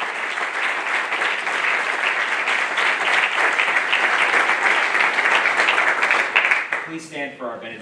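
A small crowd claps steadily in a room.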